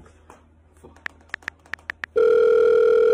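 A phone plays quick dialing beeps.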